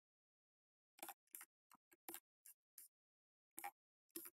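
A metal tip clicks and taps against a circuit board.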